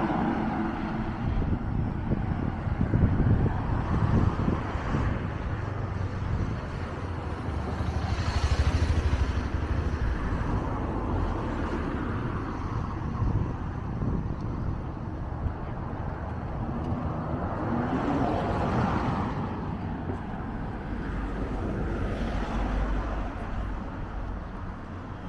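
Wind buffets the microphone outdoors with a low rumble.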